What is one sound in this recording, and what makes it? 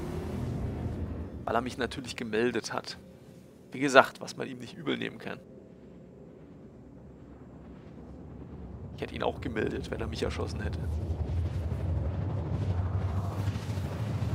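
A spaceship engine hums low and grows to a deep roar.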